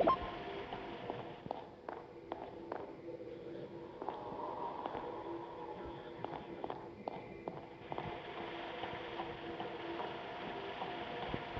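Light footsteps tap quickly and steadily.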